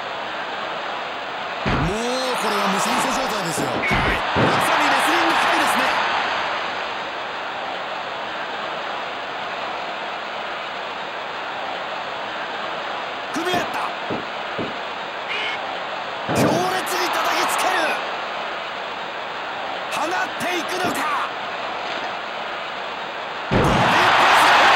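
A large crowd cheers and roars steadily in a big echoing arena, with loud swells now and then.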